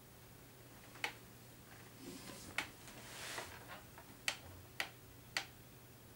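A metal guitar body knocks and clinks as it is handled.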